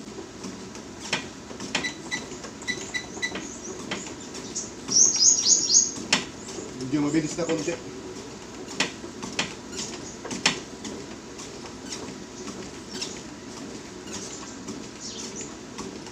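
Footsteps thud steadily on a running treadmill belt.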